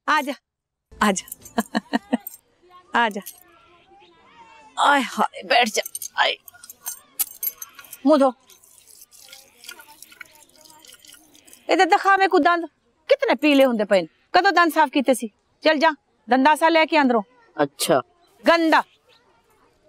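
A middle-aged woman speaks firmly, close by.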